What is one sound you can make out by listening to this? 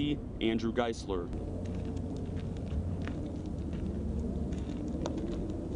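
Boots crunch on dry, stony ground.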